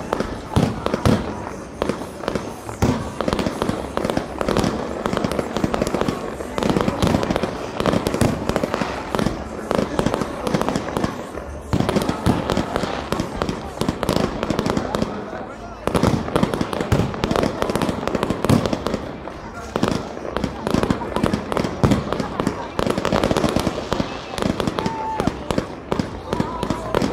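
Fireworks boom loudly as they burst in the sky.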